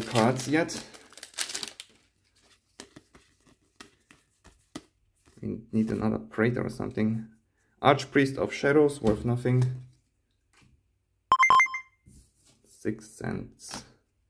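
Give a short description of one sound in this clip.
Playing cards slide and snap as hands flip through a stack.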